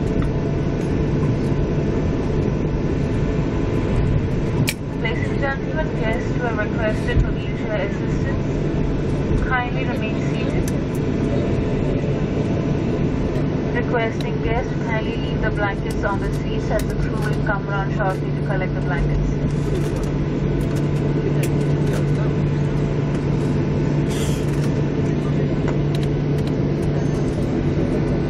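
A jet engine roars steadily close by as an airliner taxis.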